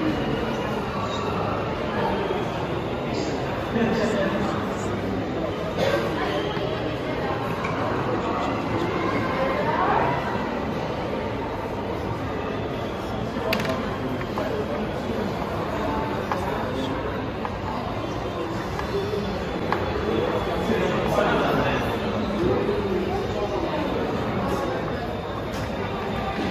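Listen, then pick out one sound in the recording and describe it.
A crowd murmurs and chatters in the background of a large echoing hall.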